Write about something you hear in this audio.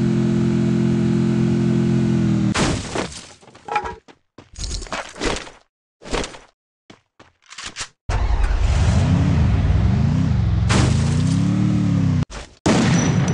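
A jeep engine hums and revs as it drives.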